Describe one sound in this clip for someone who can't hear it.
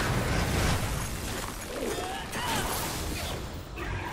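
Magic energy crackles and bursts in a blast.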